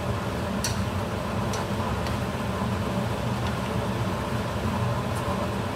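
Chopsticks clink against a metal pan while stirring shrimp.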